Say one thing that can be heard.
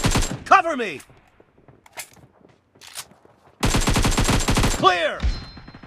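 A rifle fires in rapid bursts close by.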